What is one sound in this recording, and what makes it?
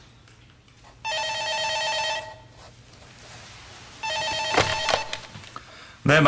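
A telephone rings twice.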